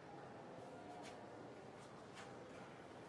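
Footsteps tap across a hard floor in an echoing hall.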